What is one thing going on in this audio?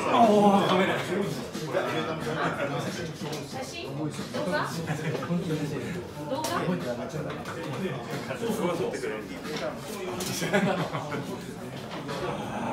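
Several men talk over one another.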